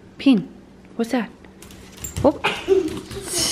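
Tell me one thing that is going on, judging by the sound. A small dog whines excitedly.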